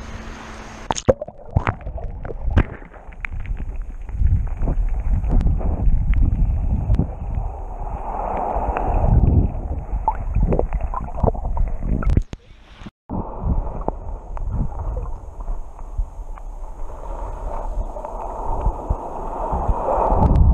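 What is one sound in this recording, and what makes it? Muffled underwater rumbling and gurgling fills the sound.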